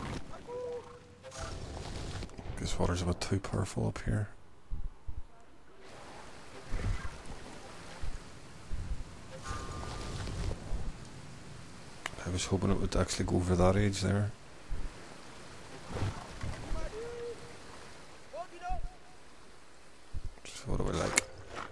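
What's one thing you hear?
Waterfalls rush and splash steadily.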